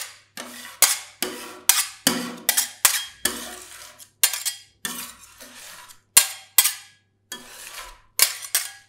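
Thick cream squelches as it is pushed and folded.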